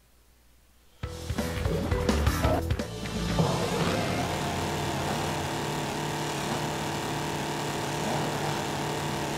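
Kart engines idle and rumble with a steady hum.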